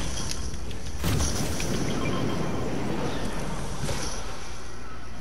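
Wind rushes past loudly during a glide through the air.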